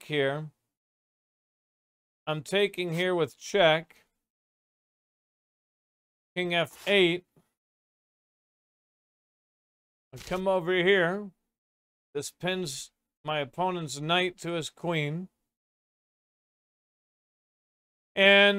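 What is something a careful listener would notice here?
An older man talks calmly into a microphone, pausing between phrases.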